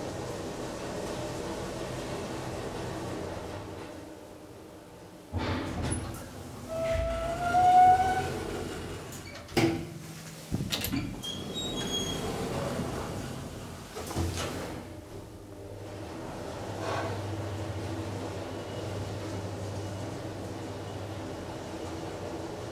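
An elevator motor hums steadily as the car moves.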